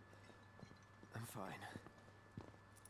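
A young man answers briefly and flatly.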